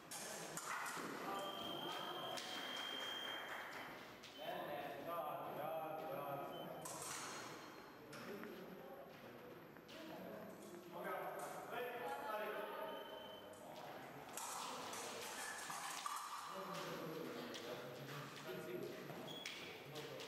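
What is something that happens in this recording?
Fencing blades clink against each other.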